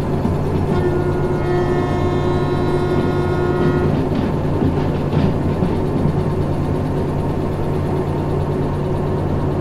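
Train wheels roll and clack over the rails.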